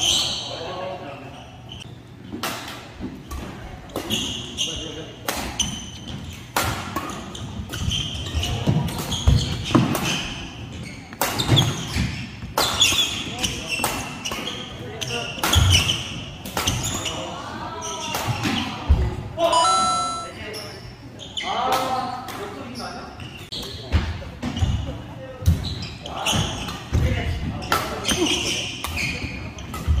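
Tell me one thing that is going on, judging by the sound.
Badminton rackets smack a shuttlecock back and forth in a sharp, quick rally.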